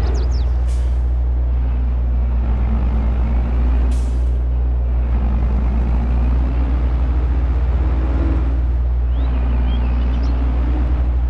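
A heavy diesel engine rumbles steadily as a forestry machine drives along.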